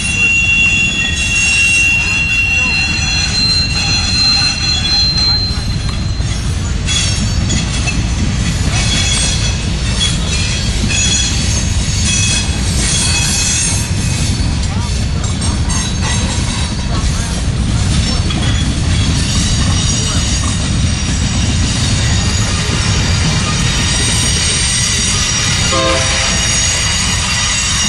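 Steel wheels squeal and clatter on the rails.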